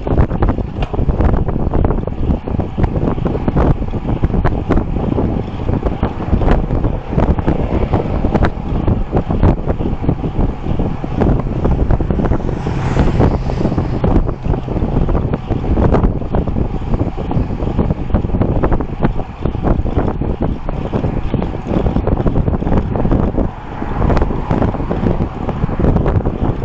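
Wind rushes loudly and roughly across a microphone.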